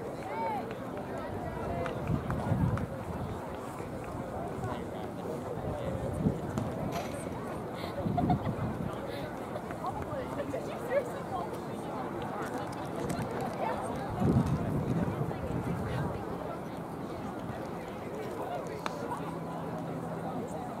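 A crowd of people chatters faintly in the distance outdoors.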